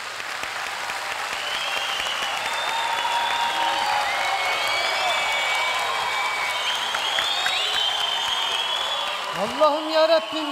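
A large crowd cheers and whistles loudly in a big hall.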